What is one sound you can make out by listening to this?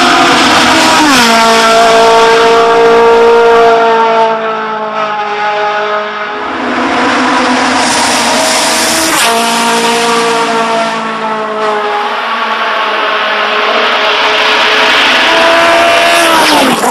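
A racing car engine drops sharply in pitch as the driver shifts gears.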